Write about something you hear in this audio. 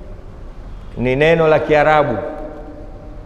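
A man speaks calmly into a microphone, drawing out his words.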